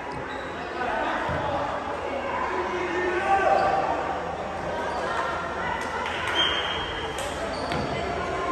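Young players chatter and call out in a large echoing gym.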